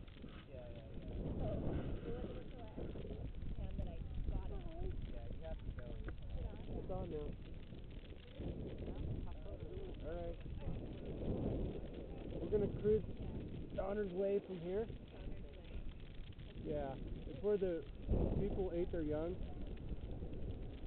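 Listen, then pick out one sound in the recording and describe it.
Young men talk nearby, outdoors.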